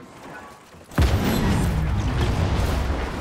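A loud explosion booms and rumbles on.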